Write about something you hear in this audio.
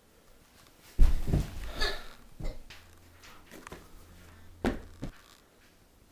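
Thumps sound as a boy moves about on the floor.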